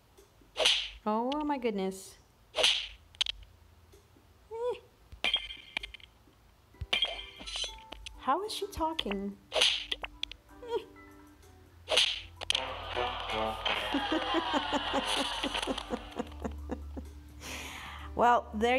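Cartoonish game sound effects whoosh, thump and chirp in quick bursts.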